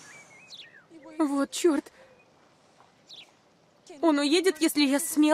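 A young woman speaks up close, sounding anxious.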